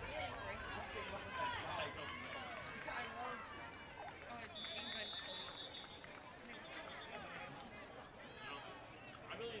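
A crowd cheers and shouts in the stands outdoors.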